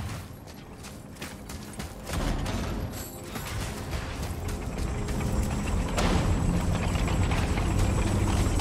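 Heavy footsteps tread steadily on dirt.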